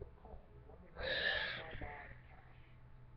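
A young girl yawns loudly.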